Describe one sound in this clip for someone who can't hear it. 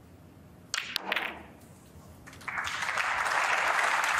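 Snooker balls knock together.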